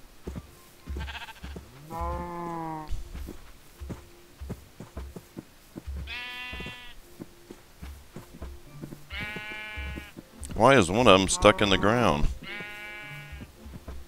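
Footsteps thud softly on grass at an even pace.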